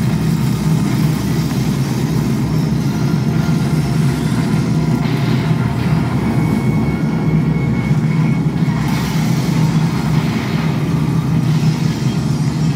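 A large fire roars with a deep, steady rumble.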